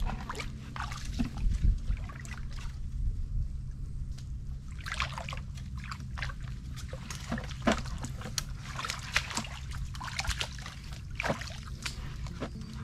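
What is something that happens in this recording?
Footsteps splash and squelch through shallow muddy water.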